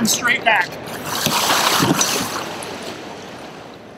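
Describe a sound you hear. Water splashes loudly as a kayak tips over.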